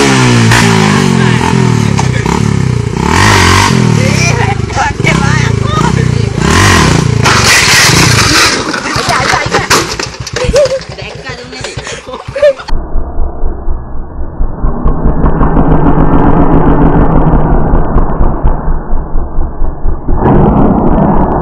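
A motorcycle engine revs loudly in bursts.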